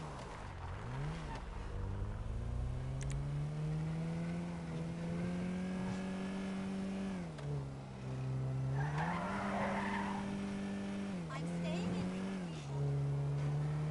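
A car engine hums and revs up and down as a car drives along a road.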